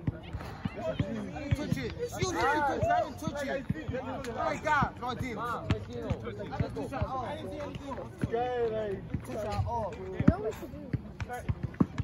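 Young men shout and call out to each other outdoors.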